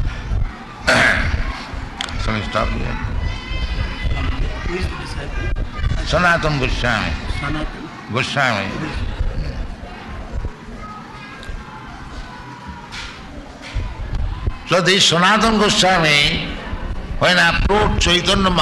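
An elderly man speaks slowly and calmly into a microphone, in a hissy old recording.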